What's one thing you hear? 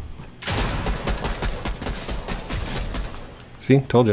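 Rapid gunshots fire from a game.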